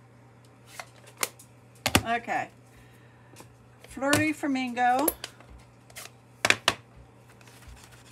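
A plastic case clicks open.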